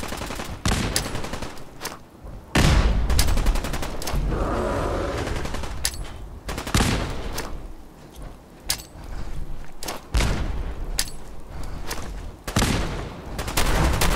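Explosions boom loudly one after another.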